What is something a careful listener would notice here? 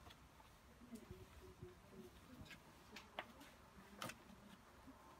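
Stiff cards slide and tap against each other on a table.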